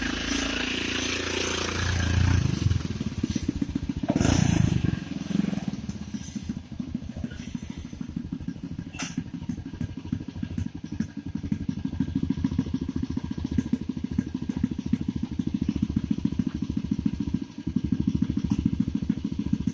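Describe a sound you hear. A motorcycle engine idles with a steady, fast chugging throb.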